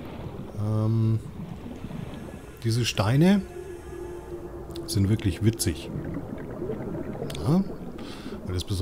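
A low underwater rumble hums steadily.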